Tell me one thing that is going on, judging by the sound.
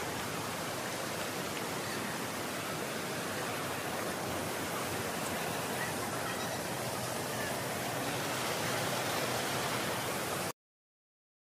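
Water rushes steadily over rocks in a stream.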